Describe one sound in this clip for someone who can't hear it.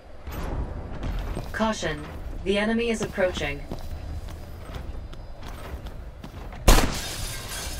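A laser gun fires with a sharp zap.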